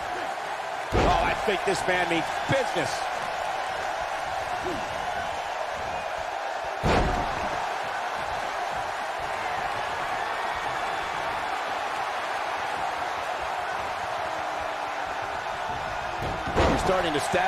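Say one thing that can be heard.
A body slams heavily onto a wrestling mat with a loud thud.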